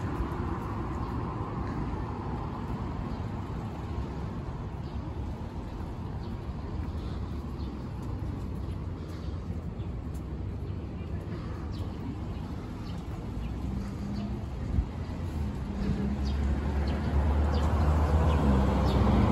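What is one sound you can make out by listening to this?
Cars drive past on a city street.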